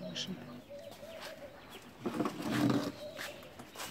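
A walking cane taps on stone paving.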